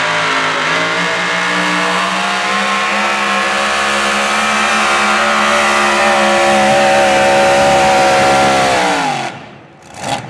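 A racing tractor engine roars loudly at full power, then abruptly cuts out.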